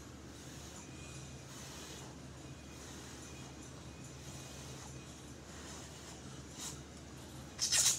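A woman slurps noodles.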